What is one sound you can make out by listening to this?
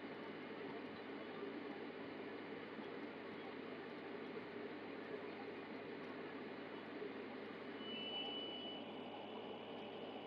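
A television plays music softly in the room.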